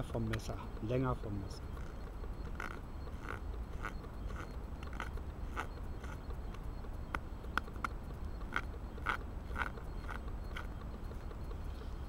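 A knife scrapes and shaves wood in short strokes.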